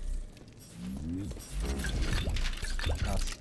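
A metal chest lid creaks open.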